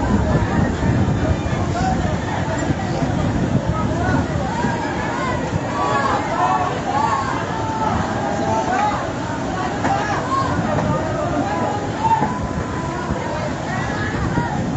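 Men and women shout and call out excitedly at a distance.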